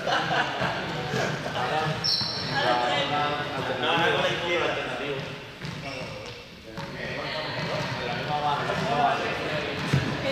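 A young man talks in a large echoing hall.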